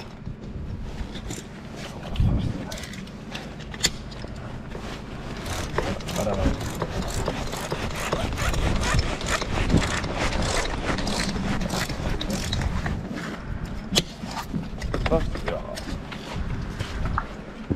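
Metal tools clank and click against a rail clamp.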